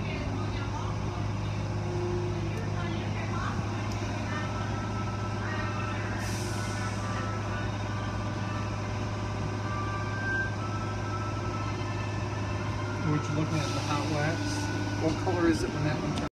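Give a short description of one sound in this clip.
An engine hums steadily.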